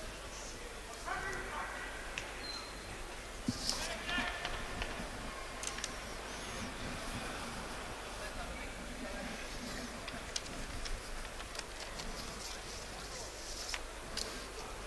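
Players shout to each other across an open stadium pitch, heard from a distance.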